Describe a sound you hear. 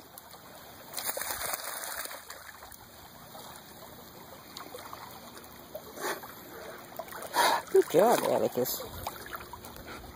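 A large dog paddles and splashes through the water close by.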